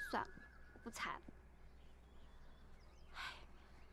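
A young woman speaks firmly and close by.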